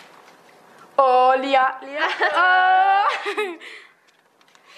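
A young girl laughs loudly.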